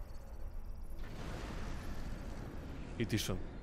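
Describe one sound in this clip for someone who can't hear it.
A large explosion roars and rumbles.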